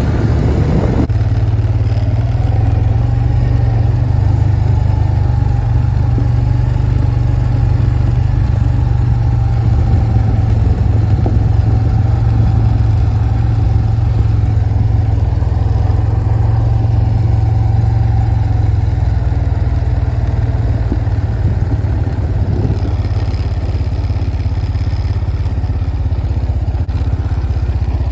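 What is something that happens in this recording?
A quad bike engine rumbles steadily close by.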